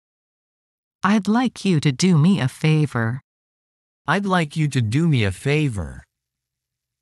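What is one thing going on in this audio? A man speaks calmly and clearly.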